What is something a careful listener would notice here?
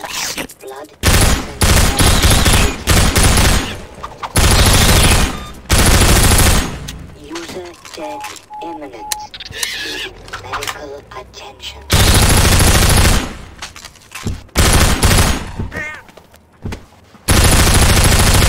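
A gun fires in loud, rapid bursts.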